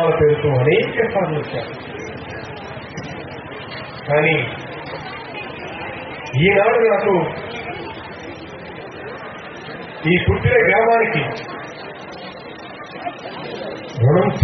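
A man gives a loud, forceful speech through a microphone and loudspeakers outdoors, in short bursts with pauses.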